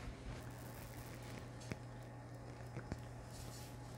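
A plastic case knocks and rattles as it is lifted from a table.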